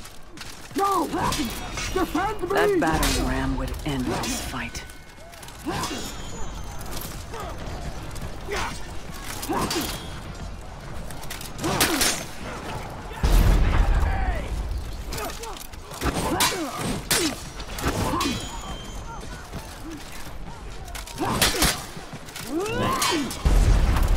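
Steel swords clash and ring.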